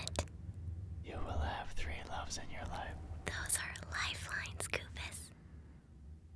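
A young man speaks softly and close by.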